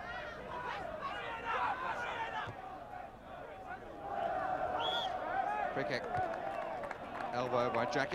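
A large crowd chants and cheers in a stadium.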